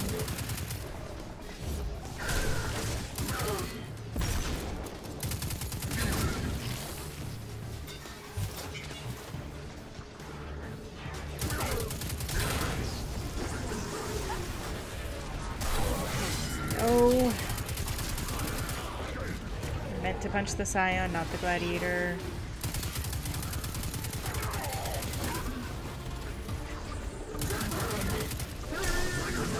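Gunfire bursts and booms again and again.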